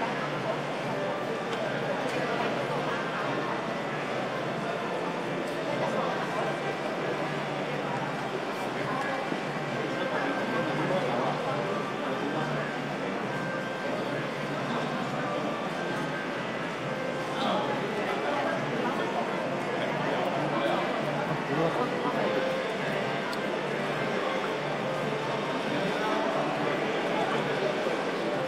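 A fiddle plays a bowed melody.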